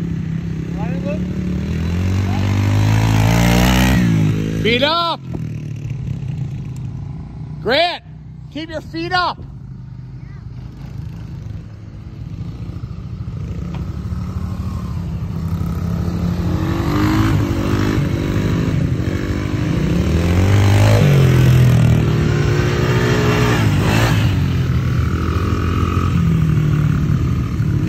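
A small dirt bike engine buzzes and revs nearby.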